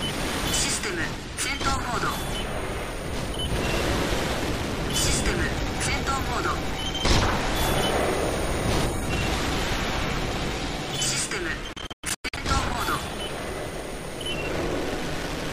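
Weapons fire and explosions boom.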